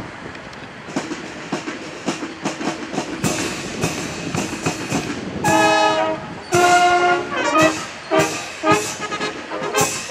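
A brass band plays a march outdoors.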